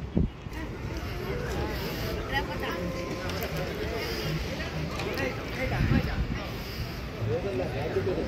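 A crowd of people chatters quietly nearby, outdoors.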